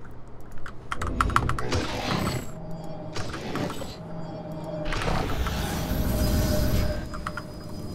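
Futuristic weapons zap and energy bursts boom in a video game.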